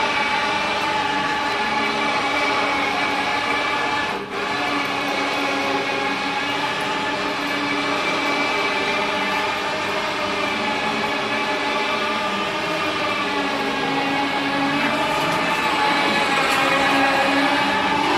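A motorcycle engine runs loudly and revs on a dyno, echoing in a large hall.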